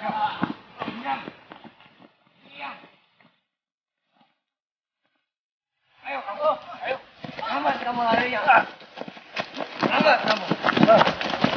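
Men shout and grunt in a scuffle outdoors.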